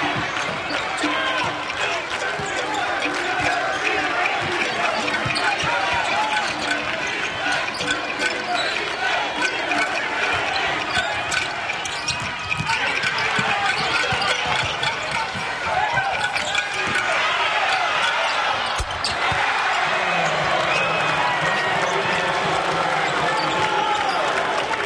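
A large crowd murmurs and shouts in a big echoing arena.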